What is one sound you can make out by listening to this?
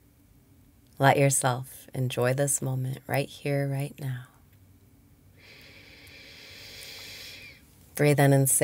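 A young woman speaks softly and calmly into a close microphone.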